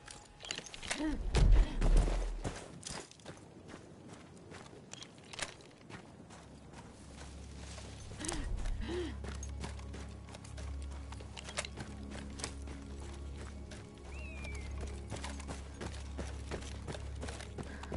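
Gunshots crack sharply in the distance.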